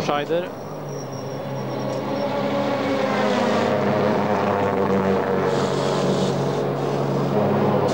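A racing car engine rumbles steadily at close range.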